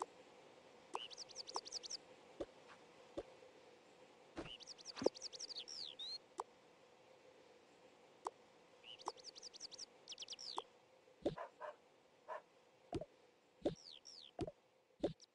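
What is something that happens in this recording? A tablet game plays bursts of quick, high chirping sound effects.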